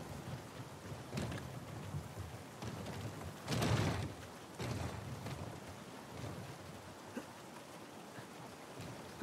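A wooden crate scrapes and grinds as it is pushed over the ground.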